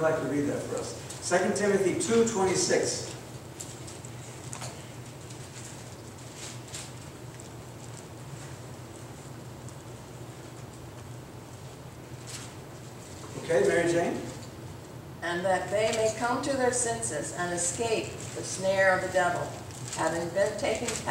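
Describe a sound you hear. An elderly man speaks calmly through a microphone in an echoing hall, pausing often.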